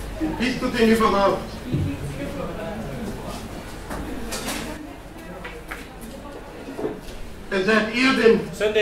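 A man speaks with animation to an audience.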